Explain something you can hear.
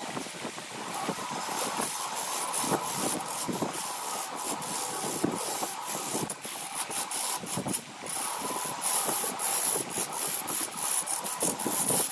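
A wood lathe motor hums as it spins.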